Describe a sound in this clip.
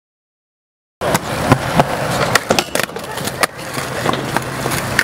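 Skateboard wheels roll and clack on smooth concrete.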